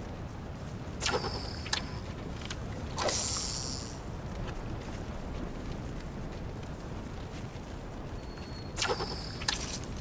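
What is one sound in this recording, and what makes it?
A zipline cable rattles and whooshes in short bursts.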